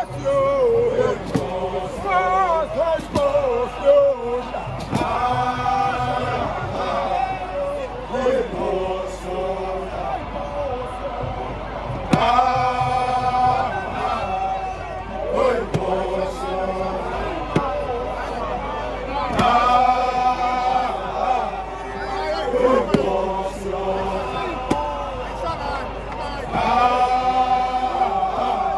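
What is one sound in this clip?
A group of men sing and chant loudly together outdoors.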